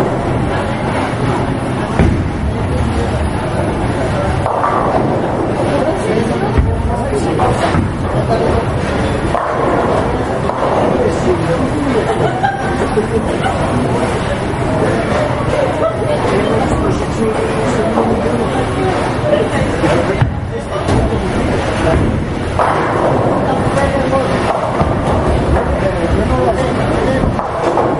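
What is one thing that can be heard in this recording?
Men talk and call out in a noisy, echoing hall.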